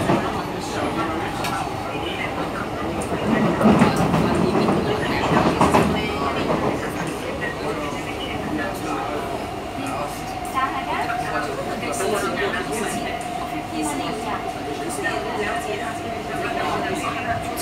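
A train's motor whines with a steady tone.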